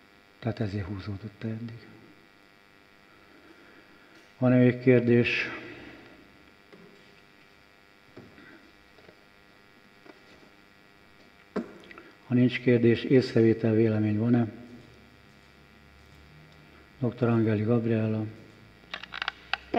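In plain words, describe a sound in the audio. An elderly man speaks calmly into a microphone, in short bursts with pauses, heard through a loudspeaker in a room.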